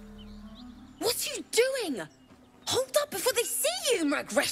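A young woman speaks sharply and with animation, close by.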